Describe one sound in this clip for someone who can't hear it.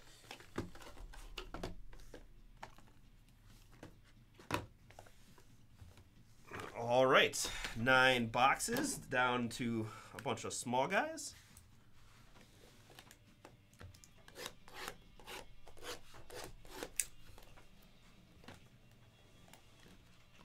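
Cardboard boxes knock and tap as they are set down and stacked.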